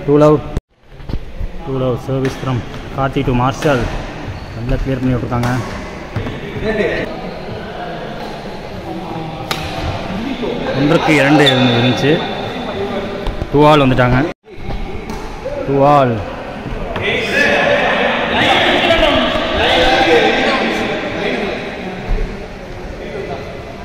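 Young men call out and talk loudly in an echoing hall.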